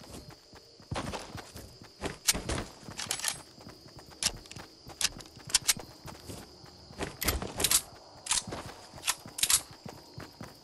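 Gunshots crack in short bursts.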